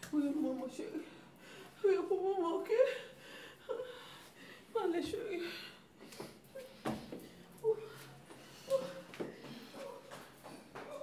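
A young woman cries out and moans close by.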